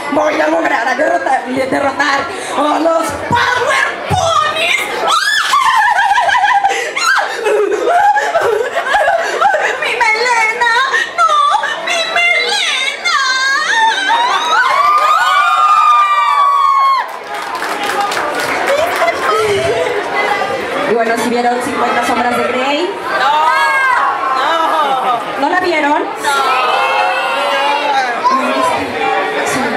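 A young woman sings loudly through a microphone and loudspeakers.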